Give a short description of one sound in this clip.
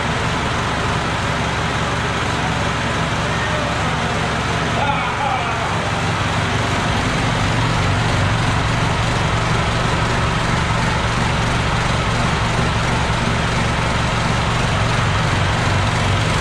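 A tractor's diesel engine idles with a loud, steady rumble.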